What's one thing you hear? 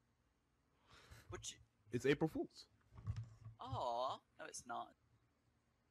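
A teenage boy exclaims loudly.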